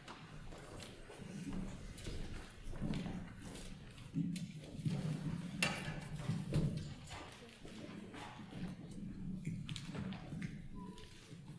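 Several young people chatter and murmur nearby.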